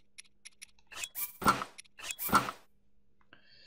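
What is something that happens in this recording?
Short swishing sounds play as gear is put on.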